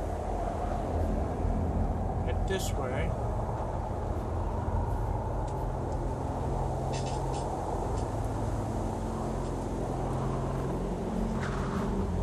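Wind howls steadily through a snowstorm.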